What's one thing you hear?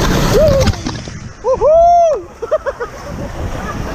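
Young people in a raft whoop and shout excitedly.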